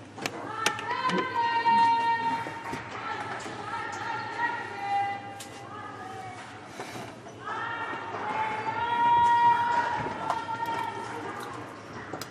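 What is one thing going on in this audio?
Young women chant and cheer loudly together.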